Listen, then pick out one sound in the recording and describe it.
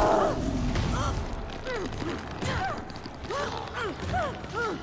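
A monster shrieks in short, high, repeated cries.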